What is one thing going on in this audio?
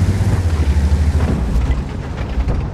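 A heavy tank engine rumbles low and loud.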